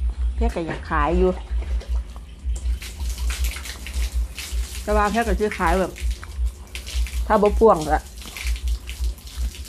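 A woman chews food noisily close to the microphone.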